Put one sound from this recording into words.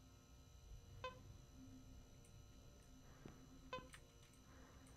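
A handheld scanner gives short electronic beeps.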